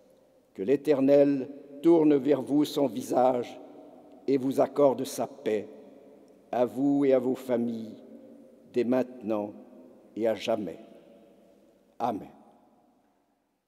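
An elderly man speaks slowly and solemnly through a microphone in a large echoing hall.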